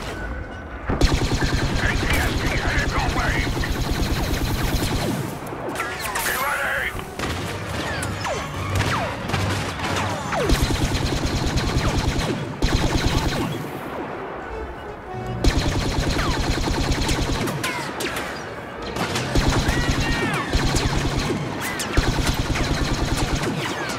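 A blaster rifle fires rapid laser shots.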